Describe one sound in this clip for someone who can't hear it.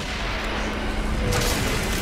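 A crackling electric bolt blasts from a weapon.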